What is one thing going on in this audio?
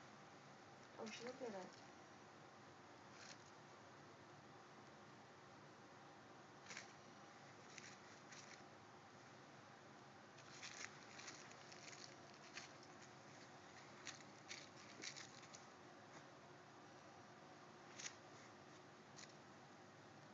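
Hands rustle and tap softly close by.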